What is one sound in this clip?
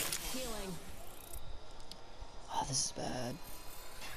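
A healing syringe is injected.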